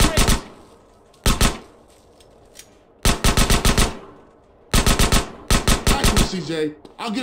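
Rapid gunshots fire in short bursts.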